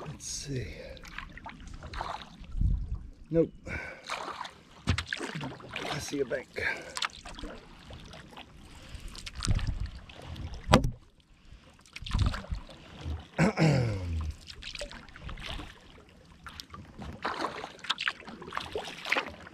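Water laps gently against the hull of a kayak.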